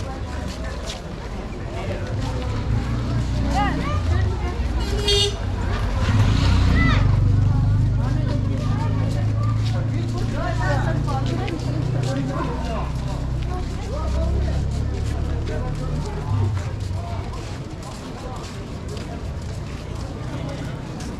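Footsteps shuffle on a paved street as a crowd walks.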